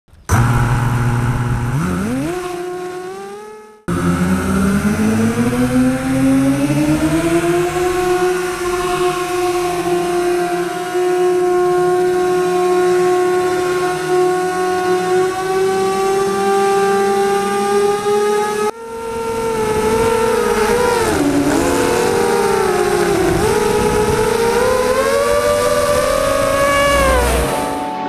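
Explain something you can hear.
A drone's propellers whine loudly, rising and falling in pitch.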